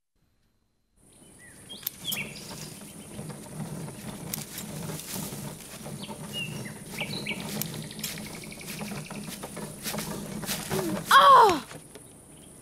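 A small toy car's motor hums steadily as it drives along.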